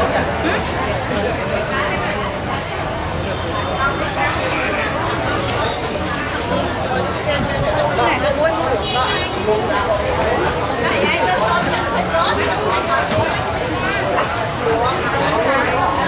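A busy crowd murmurs and chatters all around.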